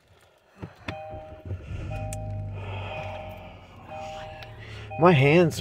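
A car's dashboard system beeps with a short electronic chime.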